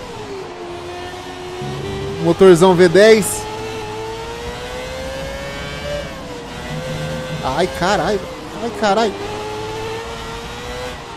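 A racing car engine drones steadily, its pitch rising and falling with speed.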